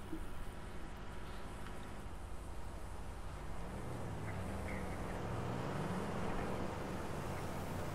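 A tractor engine rumbles past.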